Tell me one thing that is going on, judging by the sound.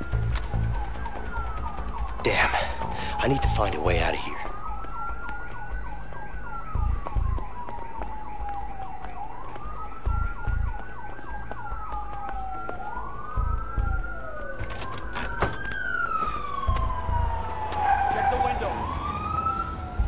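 Soft footsteps shuffle across a floor.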